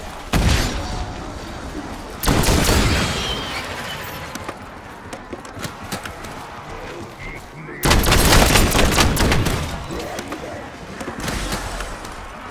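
Rapid gunshots fire in short, loud bursts.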